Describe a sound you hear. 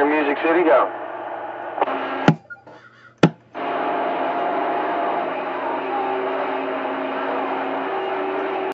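A radio receiver hisses with static.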